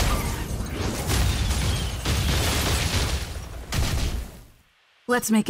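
Magical blasts roar and crackle.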